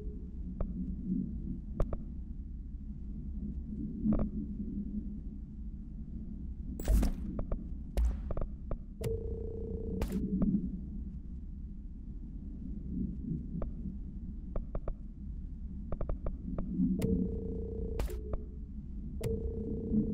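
Short menu clicks sound as selections change.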